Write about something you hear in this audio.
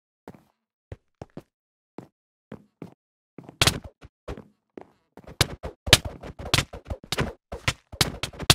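Footsteps patter softly on the ground.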